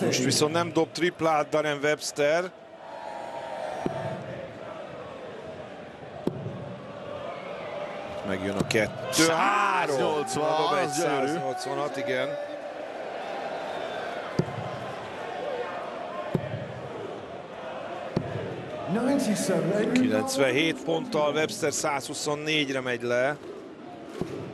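A large crowd sings and chants loudly in a big echoing hall.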